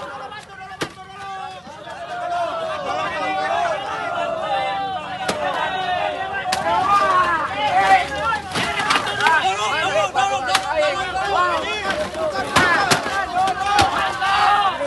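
Motorcycles are knocked over and bang against each other with loud metal clatters.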